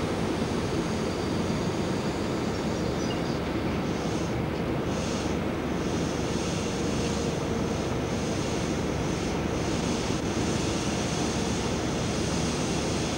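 A diesel locomotive engine idles with a loud, steady rumble.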